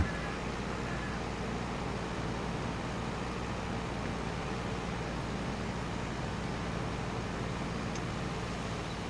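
A tractor engine rumbles steadily while driving.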